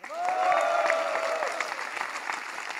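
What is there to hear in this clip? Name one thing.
People in the audience cheer.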